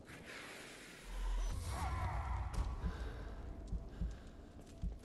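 Fire roars and crackles in a burst of flame.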